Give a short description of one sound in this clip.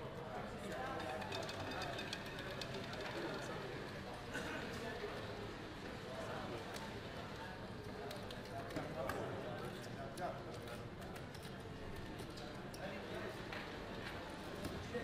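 Casino chips clack softly as they are stacked and moved.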